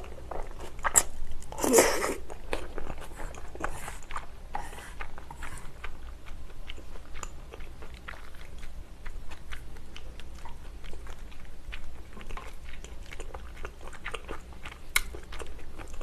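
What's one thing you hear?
Chopsticks clink against a metal pan.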